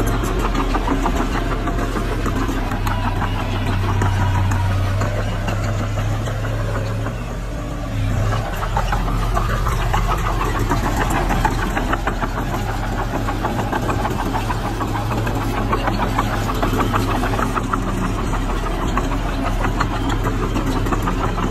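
Dirt scrapes and tumbles as a bulldozer blade pushes it.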